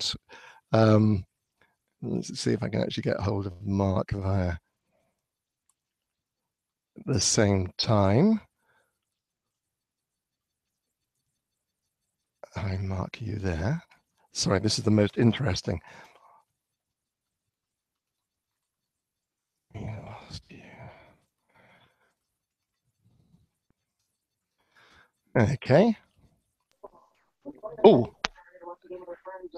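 A middle-aged man speaks calmly and warmly through a headset microphone, with pauses.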